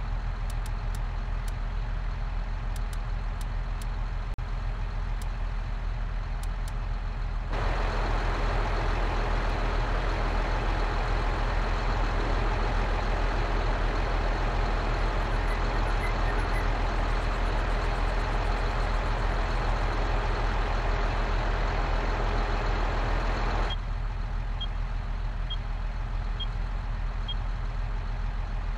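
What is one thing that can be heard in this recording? A tractor engine idles with a low, steady rumble.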